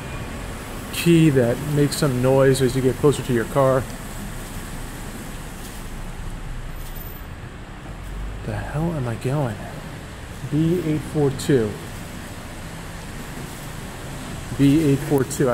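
A man speaks close to a microphone in short bursts, calmly, with pauses.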